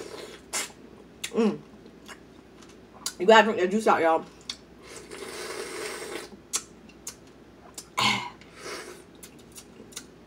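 A woman chews and slurps loudly close to a microphone.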